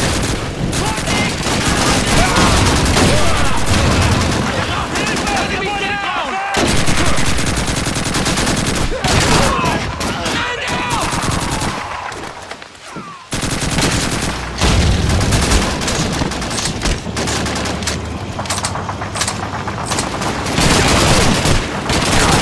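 Gunfire crackles all around in a battle.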